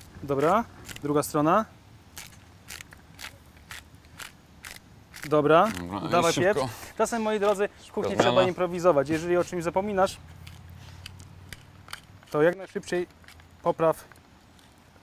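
A pepper mill grinds with quick, crackling clicks.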